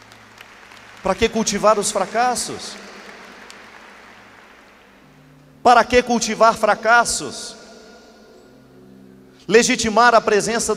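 A young man speaks with animation through a microphone and loudspeakers in a large echoing hall.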